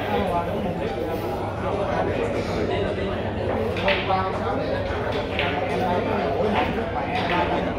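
Billiard balls click sharply against each other.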